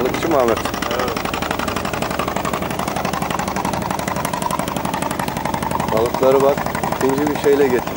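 A diesel fishing boat chugs past.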